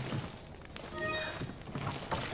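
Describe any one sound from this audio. A short chime rings.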